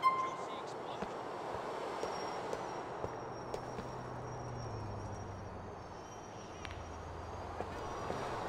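Footsteps tap lightly on a pavement.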